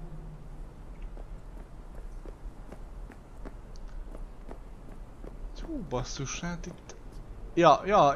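Footsteps scuff across a concrete rooftop.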